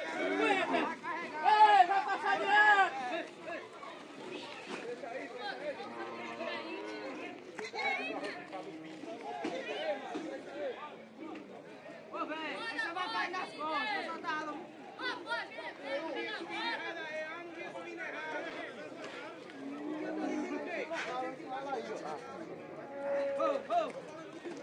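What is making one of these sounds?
Adult men shout and call out to one another nearby, outdoors.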